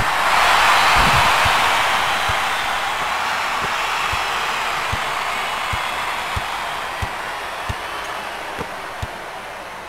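A basketball bounces on a hardwood floor with steady thuds.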